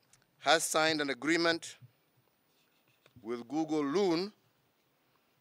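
A man speaks slowly and formally into a microphone.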